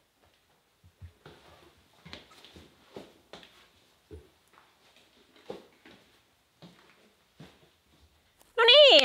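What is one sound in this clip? Shoes scuff and tap on a tiled floor.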